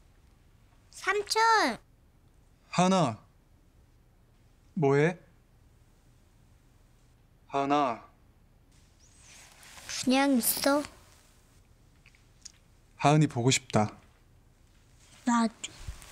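A young girl speaks softly into a phone.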